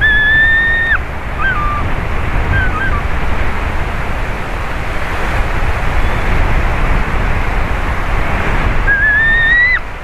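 Wind rushes through the treetops.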